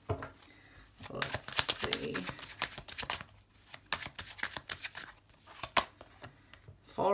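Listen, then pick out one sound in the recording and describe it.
Playing cards riffle and flutter as a deck is shuffled by hand.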